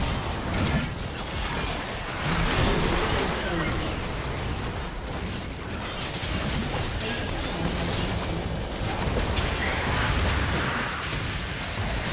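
Magic blasts and clashing effects crackle and burst in a busy fight.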